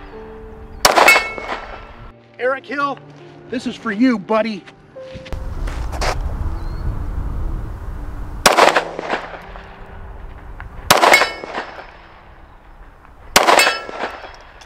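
Gunshots crack loudly, one at a time.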